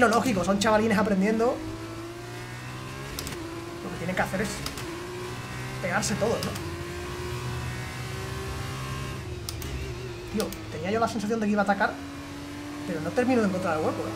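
A racing car engine whines and shifts gears.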